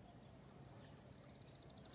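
A fishing reel clicks rapidly.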